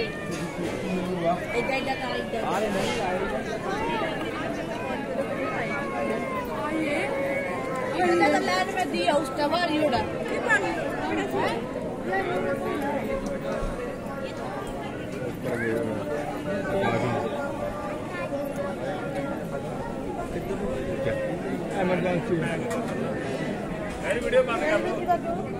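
A large crowd murmurs and chatters all around.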